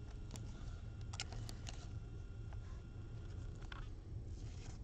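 A foil card pack crinkles as hands tear it open.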